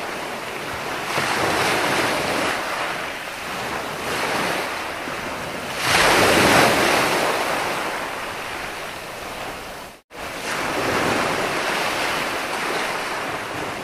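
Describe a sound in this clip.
Ocean waves break and wash onto a beach in surging rushes.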